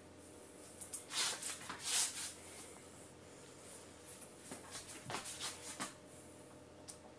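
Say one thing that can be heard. Tape crinkles and tears as it is pulled.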